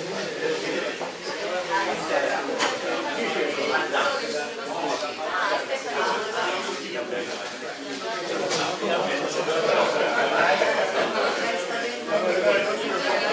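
A crowd of men and women chatter at once, close by.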